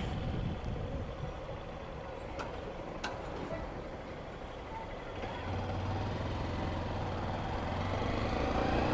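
A motorcycle engine idles, then revs as the motorcycle pulls away.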